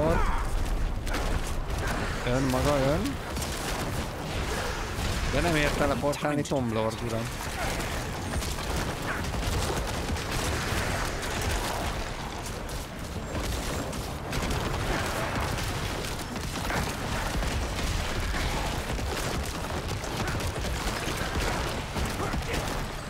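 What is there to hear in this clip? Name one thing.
Magic blasts and weapon clashes boom and crackle in a fight.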